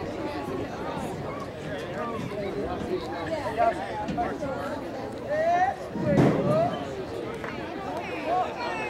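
Young men call out and chatter across an open field.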